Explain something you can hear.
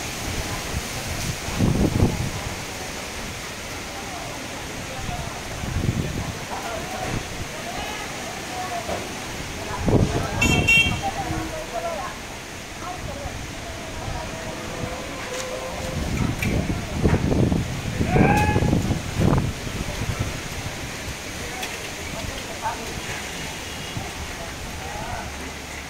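Palm fronds rustle and thrash in the wind.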